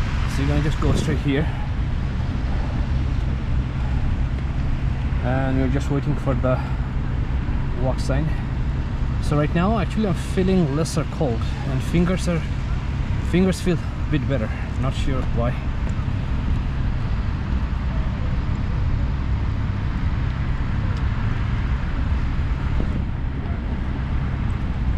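City traffic rumbles steadily in the distance.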